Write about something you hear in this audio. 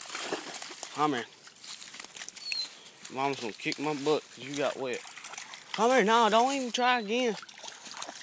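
A dog whines and yelps in high, excited bursts.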